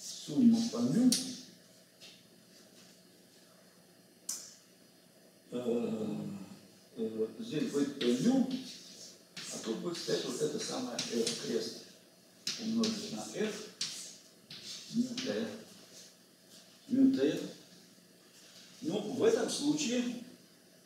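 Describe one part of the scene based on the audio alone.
An elderly man lectures calmly in a room with a slight echo, pausing between phrases.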